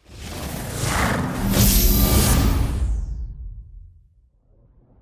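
A loud startup chime swells and fades.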